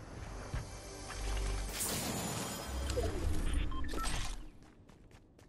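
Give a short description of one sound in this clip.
A treasure chest creaks open with a bright shimmering chime.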